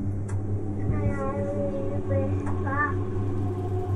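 A young child reads aloud softly.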